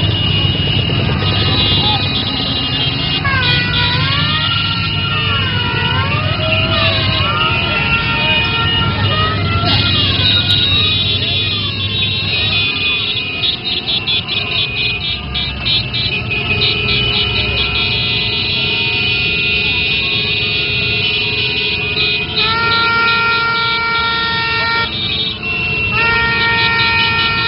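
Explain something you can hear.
Many motorcycle engines idle and rev close by.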